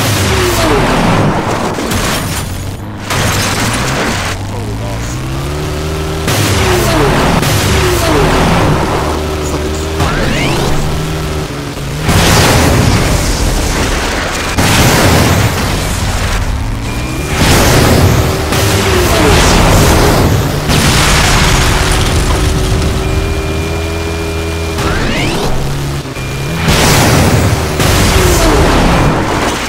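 A buggy engine revs and roars, shifting up and down through gears.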